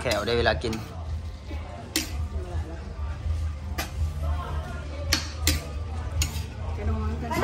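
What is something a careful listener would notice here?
Meat sizzles in a hot pan.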